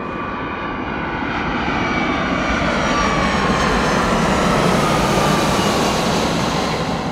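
Jet engines whine with a high tone that slides downward as the airliner passes.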